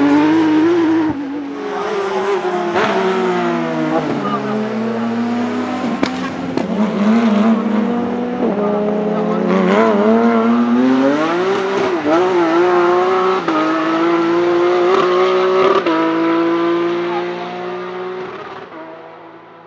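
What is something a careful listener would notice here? A race car engine shifts gears with sharp pops and changes in pitch.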